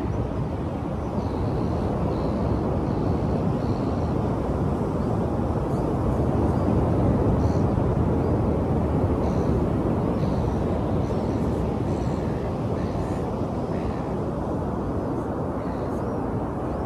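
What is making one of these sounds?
Waves rush and wash steadily onto a shore.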